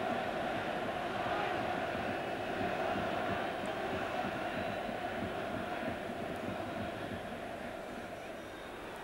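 A large stadium crowd roars and chants steadily, fading slightly toward the end.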